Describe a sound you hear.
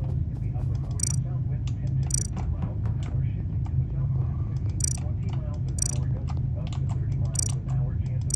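An alarm beeps in short bursts.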